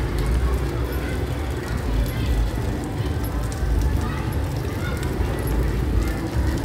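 Rain falls steadily on a wet street.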